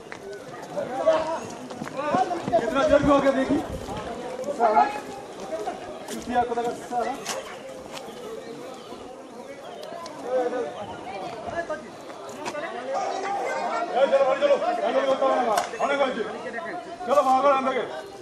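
Several men shout and talk excitedly nearby, outdoors.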